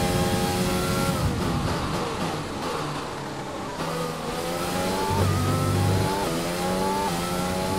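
A racing car engine screams, dropping in pitch as it slows and rising again with each gear change as it speeds up.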